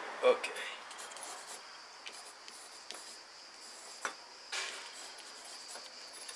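A pencil scratches softly across a card.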